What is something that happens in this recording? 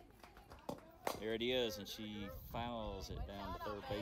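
A softball smacks into a catcher's mitt.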